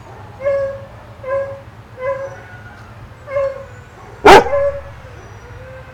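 Small dogs bark sharply outdoors, nearby.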